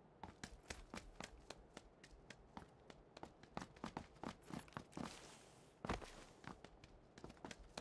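Footsteps run on concrete.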